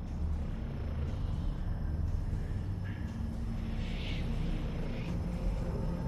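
Steam hisses softly.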